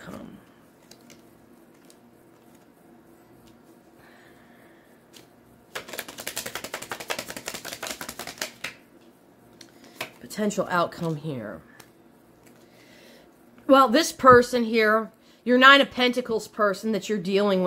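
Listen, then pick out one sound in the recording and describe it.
Playing cards slide and tap onto a wooden table.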